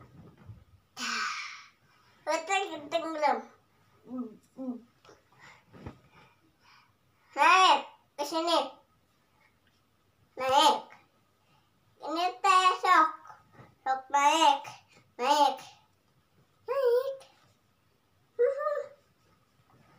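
A young girl talks and sings in short bursts close by.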